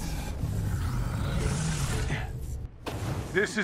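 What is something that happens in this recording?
Heavy rumbling blows and energy blasts sound in a fight.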